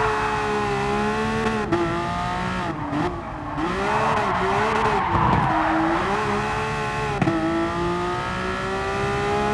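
A racing car engine roars steadily, its pitch rising and falling as it changes gear.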